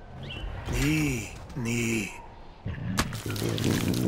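A big cat snarls and growls close by.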